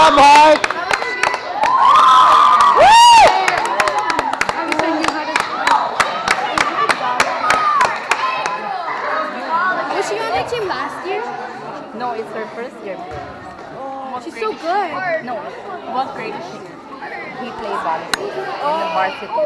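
Girls cheer and chatter close by in a large echoing gym.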